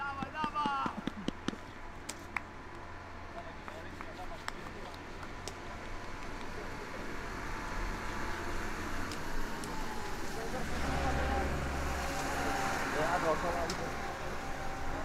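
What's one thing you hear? Young men shout to each other across an open field in the distance.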